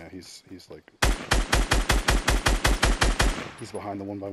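A rifle fires in a fast, loud burst of shots.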